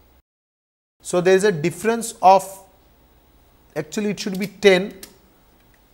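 A middle-aged man speaks calmly and clearly into a microphone, with pauses.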